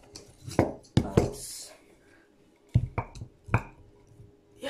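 A cake board knocks against a metal cake turntable.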